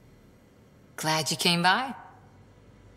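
A young woman speaks briefly in a warm, friendly tone.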